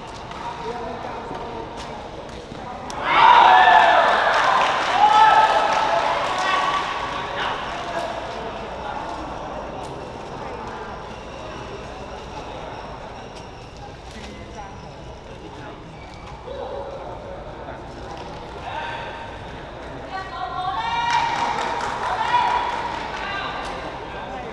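A crowd murmurs in the distance.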